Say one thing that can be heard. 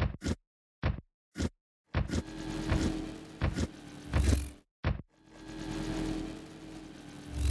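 Short bouncy sound effects play as a cartoon character jumps from ledge to ledge.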